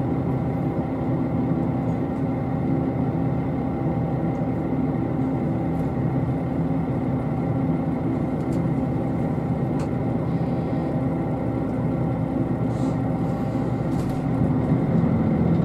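A train engine hums steadily nearby.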